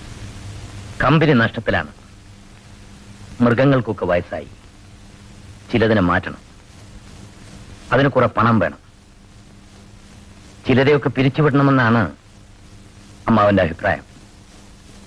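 A man speaks in short, tense bursts with pauses between them.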